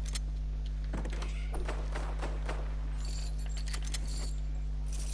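A pickaxe strikes a wooden door several times.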